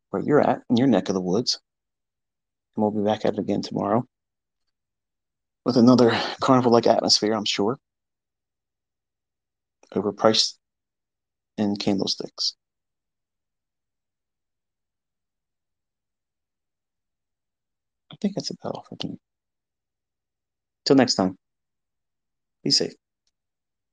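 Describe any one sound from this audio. A man speaks calmly in short bursts, close to a microphone.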